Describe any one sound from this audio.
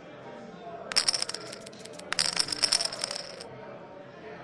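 Poker chips clack together in short bursts.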